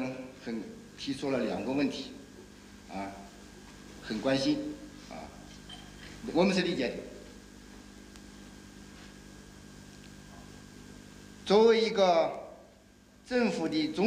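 An elderly man speaks slowly and deliberately into a microphone, pausing between phrases.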